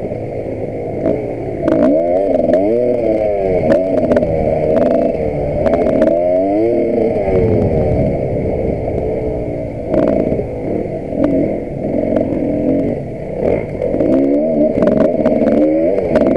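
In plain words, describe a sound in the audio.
A dirt bike knocks and rattles over rough ground.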